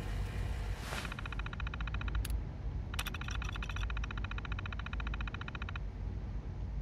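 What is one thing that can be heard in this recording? A computer terminal beeps rapidly as text prints out.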